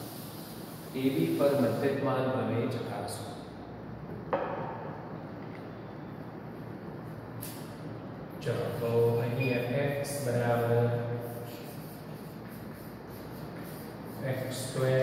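A middle-aged man speaks calmly and clearly, close by, as if teaching.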